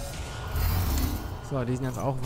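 A futuristic gun fires with a loud blast.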